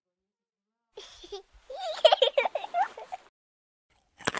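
A young girl laughs close by.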